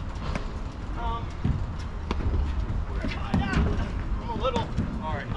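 Men call out to each other from a distance.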